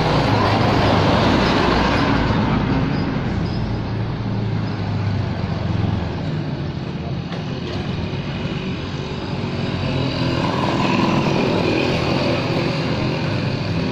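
A motorbike drives past nearby.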